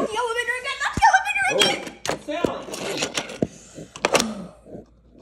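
Plastic toy parts click and clack.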